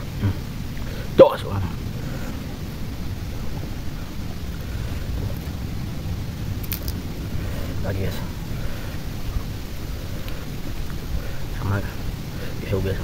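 A young man chews food noisily close by.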